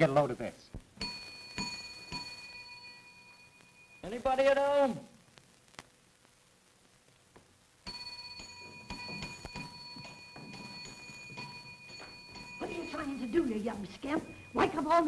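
A desk bell rings and its tone lingers.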